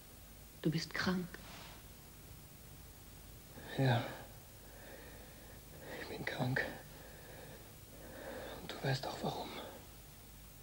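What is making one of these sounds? A young woman speaks softly and quietly close by.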